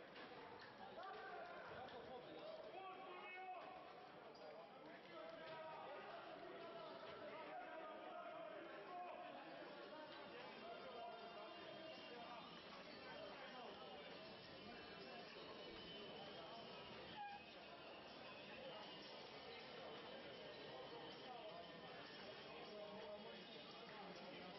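Young men shout and cheer in celebration.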